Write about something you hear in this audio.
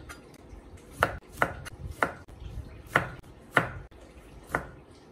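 A knife slices through a lemon and taps sharply on a cutting board at a slow, steady pace.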